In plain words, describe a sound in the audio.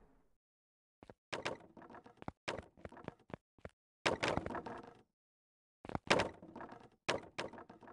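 Building pieces snap into place with quick clacks.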